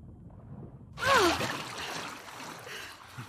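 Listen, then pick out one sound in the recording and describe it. A young girl gasps for breath as she surfaces from water.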